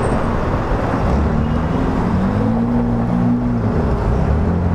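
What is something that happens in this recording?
A motorcycle engine revs up as it pulls away.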